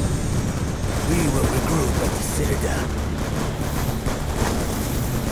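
A man speaks with a gruff voice close by.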